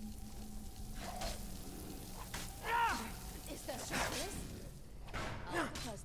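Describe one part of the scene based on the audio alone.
A monstrous creature lets out deep, rasping growls.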